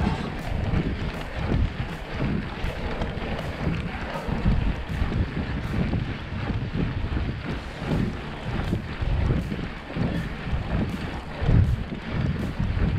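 Bicycle tyres roll over a paved street.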